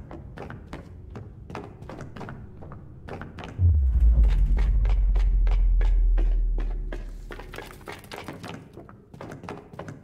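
Quick footsteps patter across a wooden floor.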